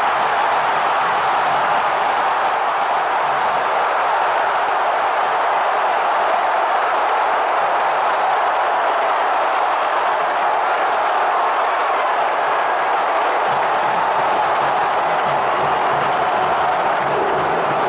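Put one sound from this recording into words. A large stadium crowd roars steadily throughout.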